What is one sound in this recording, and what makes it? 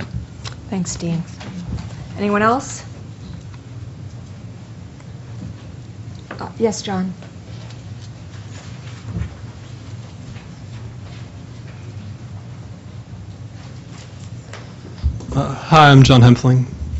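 A man speaks into a microphone in a room with a slight echo.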